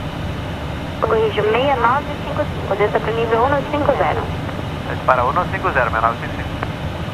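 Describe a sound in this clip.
A man speaks calmly over a headset radio.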